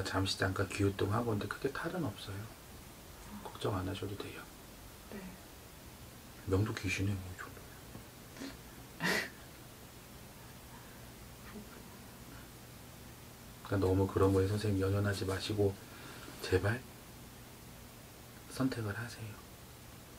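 A man speaks calmly into a nearby microphone, in short bursts with pauses.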